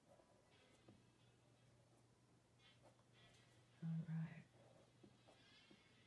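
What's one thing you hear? A marker squeaks softly as it colours on paper.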